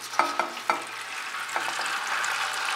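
A metal spoon clinks against a strainer.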